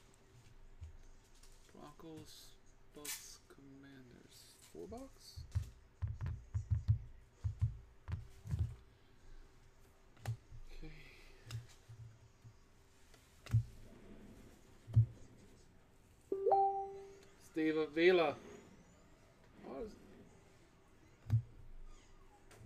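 Trading cards slide and tap against each other in hands.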